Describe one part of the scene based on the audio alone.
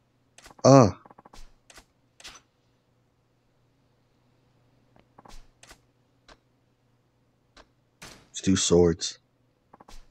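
A man speaks a few short words in a calm, low voice.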